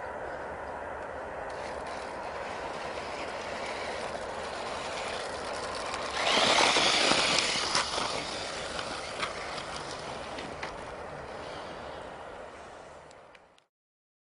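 A small electric motor whines as a toy car speeds along.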